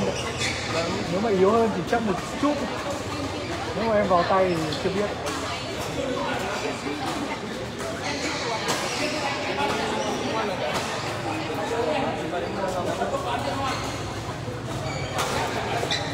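Men talk and call out nearby in an echoing hall.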